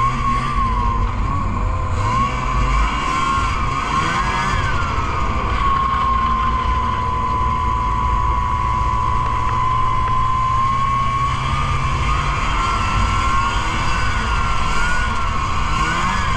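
A snowmobile engine drones loudly and close by, its pitch rising and falling with the throttle.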